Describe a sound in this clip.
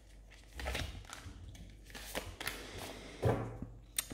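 A card is laid down softly on a table.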